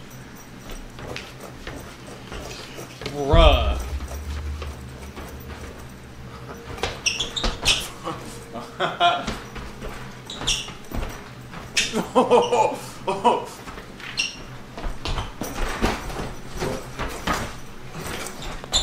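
A young man laughs heartily close to a microphone.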